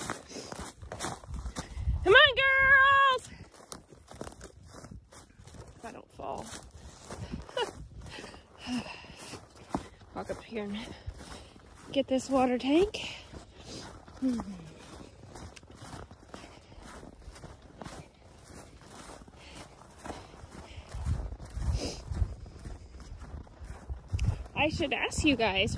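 Footsteps crunch on snow and frozen grass.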